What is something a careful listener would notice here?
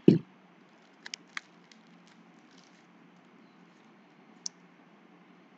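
Trading cards slide and click against each other in a pair of hands.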